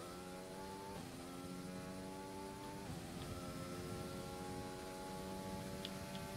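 A racing car engine screams at high revs, dropping in pitch with each quick gear change.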